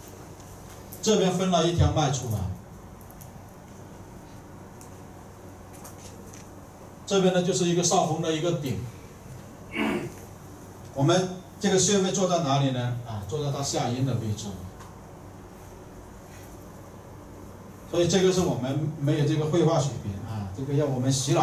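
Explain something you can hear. A man speaks calmly in short bursts, at a middle distance.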